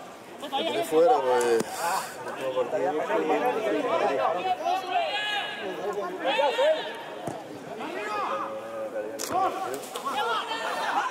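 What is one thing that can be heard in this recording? Several men talk and call out with animation close by, outdoors.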